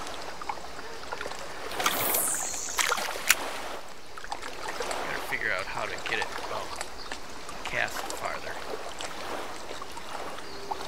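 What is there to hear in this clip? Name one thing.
Water laps gently against a jetty.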